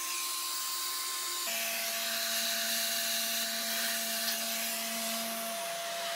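A vacuum nozzle hisses as it sucks up dust.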